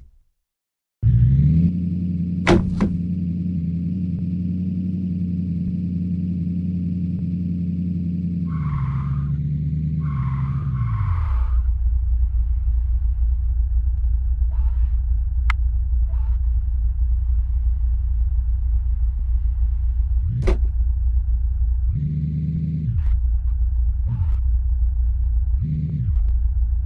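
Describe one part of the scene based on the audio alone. A car engine drones steadily, then its pitch drops to a low, rumbling idle.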